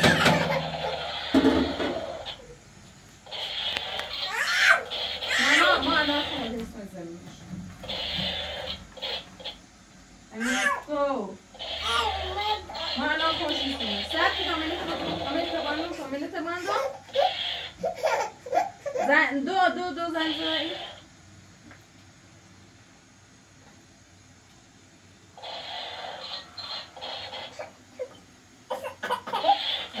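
A woman talks softly and affectionately to a baby nearby.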